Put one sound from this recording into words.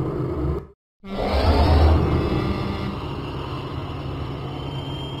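A train engine rumbles as it approaches.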